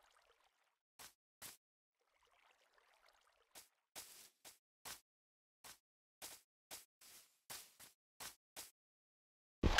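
Footsteps crunch on grass.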